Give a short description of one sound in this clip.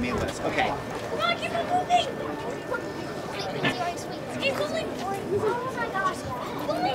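A crowd of people chatter close by outdoors.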